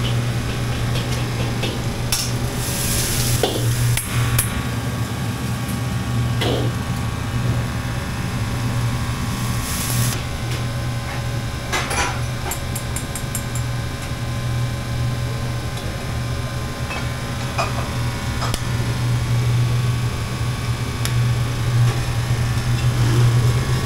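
A wok burner roars steadily.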